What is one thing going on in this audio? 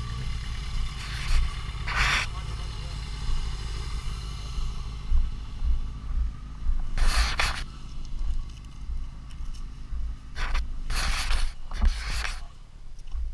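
Blowing sand hisses across the road.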